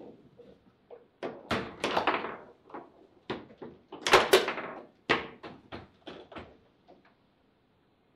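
Table football rods spin and clatter.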